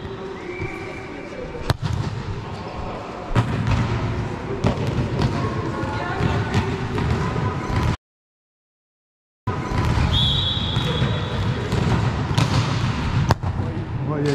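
A volleyball is slapped hard by a hand, echoing in a large hall.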